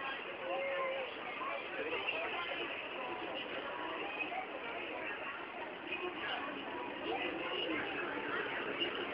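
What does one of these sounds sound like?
A crowd of men, women and children chatters all around outdoors.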